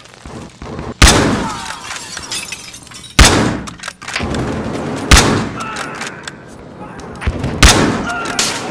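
A rifle fires loud single shots that ring out and echo.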